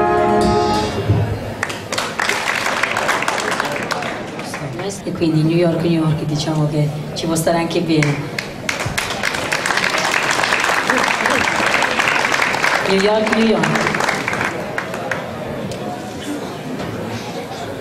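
A crowd claps and applauds outdoors.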